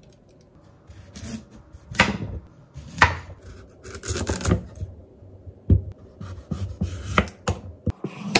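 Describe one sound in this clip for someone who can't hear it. A knife chops through a carrot onto a wooden board with loud thuds.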